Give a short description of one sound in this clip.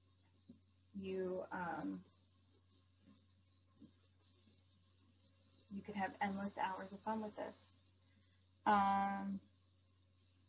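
A woman speaks in short phrases over an online call.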